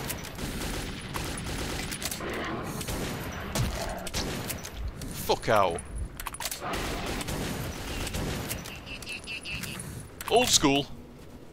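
A gun clicks and clacks as it is reloaded.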